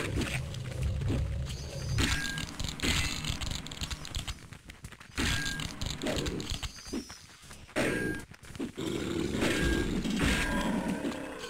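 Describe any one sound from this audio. Heavy blades strike with sharp, ringing impacts.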